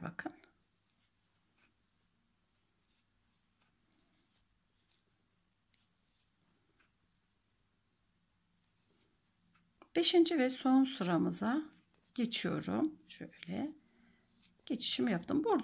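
A crochet hook softly taps and rubs against yarn.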